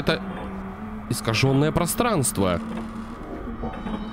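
A wooden door creaks slowly open.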